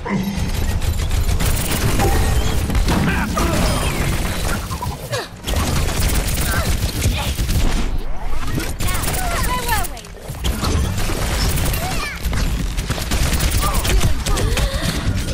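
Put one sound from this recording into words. Pistols fire in rapid bursts.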